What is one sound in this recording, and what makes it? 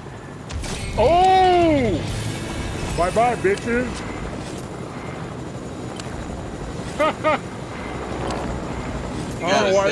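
Bright electronic chimes ring out in short rising and falling bursts.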